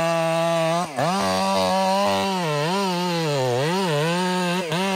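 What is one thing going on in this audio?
A chainsaw cuts into a tree trunk.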